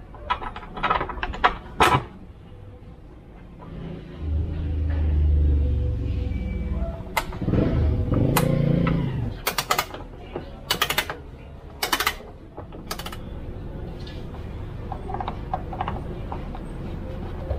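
Plastic panels click and rattle as hands pull them loose.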